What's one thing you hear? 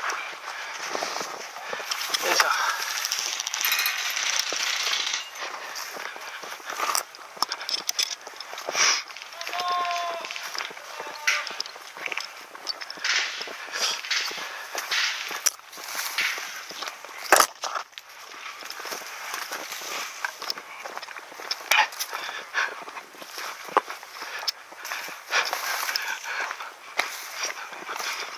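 Dry grass rustles and crackles as someone walks through it.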